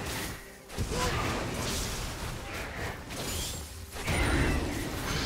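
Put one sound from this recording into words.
Video game combat effects clash and whoosh.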